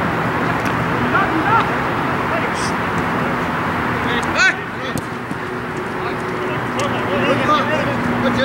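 Men shout to each other from across an open field outdoors.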